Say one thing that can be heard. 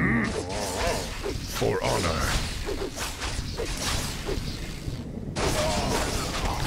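Swords clash and clang in a fast fight.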